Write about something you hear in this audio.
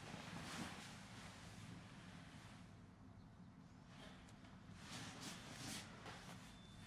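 A young woman breathes heavily and gasps close by.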